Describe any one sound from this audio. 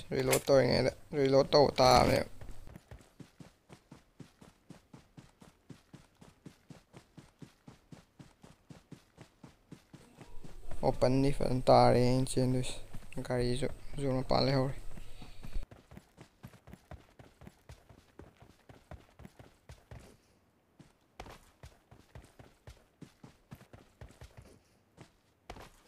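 Quick footsteps run steadily over dirt and grass.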